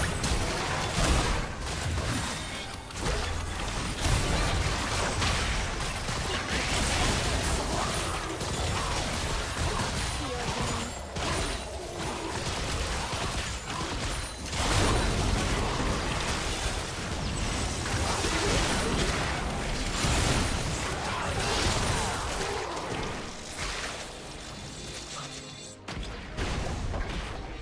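Game spell effects and attacks crackle and boom in a busy fight.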